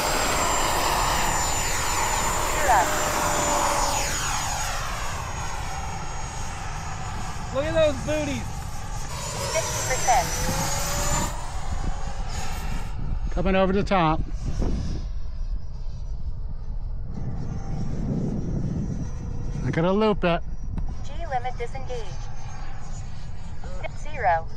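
Small jet engines whine loudly as model planes fly past overhead, rising and falling in pitch.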